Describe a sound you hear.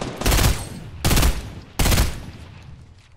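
Gunshots fire in quick, loud bursts.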